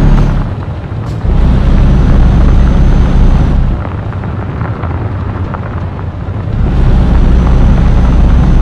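A diesel truck engine drones as the truck drives along a road.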